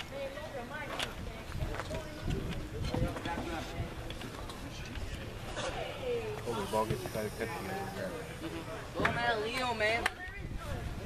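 Young men talk and call out to each other outdoors.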